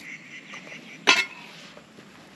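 An egg cracks sharply against the edge of a pan.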